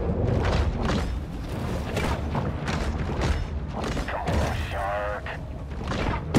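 Water rushes and churns as a shark swims underwater.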